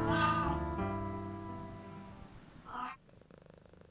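A cat meows loudly.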